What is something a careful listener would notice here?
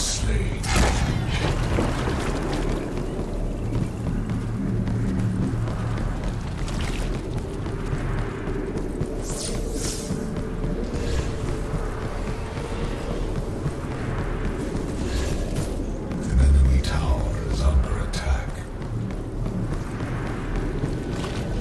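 Footsteps thud steadily as a game character runs.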